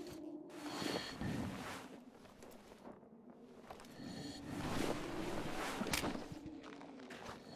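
Wind blows in strong gusts.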